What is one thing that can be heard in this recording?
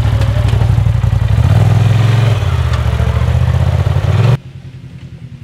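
An off-road vehicle's engine idles loudly with a deep, throbbing rumble close by.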